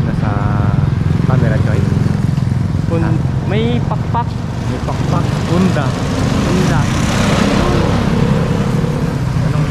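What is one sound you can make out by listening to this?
A motorbike engine runs past nearby.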